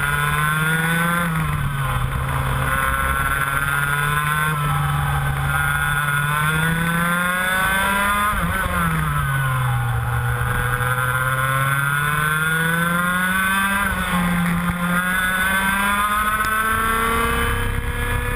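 A kart engine buzzes loudly up close, its pitch rising and falling as it speeds up and slows for corners.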